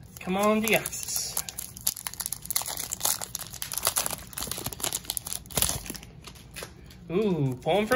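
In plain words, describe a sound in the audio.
A foil wrapper crinkles and rustles as it is torn open.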